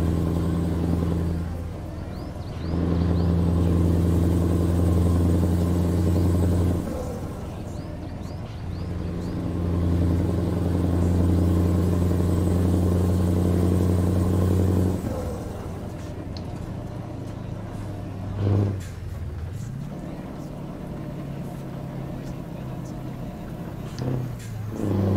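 A truck engine rumbles loudly, dropping and rising in pitch as gears change.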